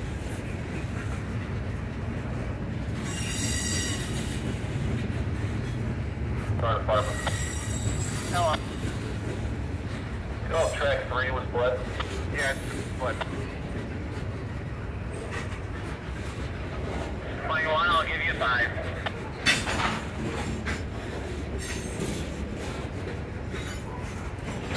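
A freight train rumbles steadily past up close.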